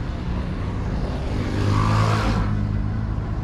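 A motor scooter passes close by with a buzzing engine.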